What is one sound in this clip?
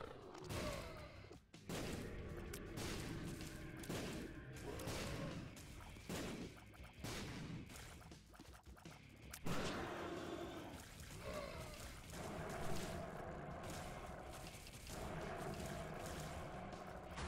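Game sound effects of shots, squelches and bursts play rapidly throughout.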